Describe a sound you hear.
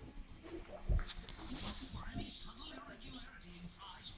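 A puppy chews and tugs on a rubber sandal.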